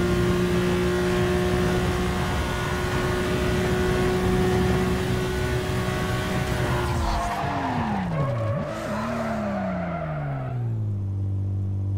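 A car engine roars at high speed, then its pitch drops sharply as the car slows down.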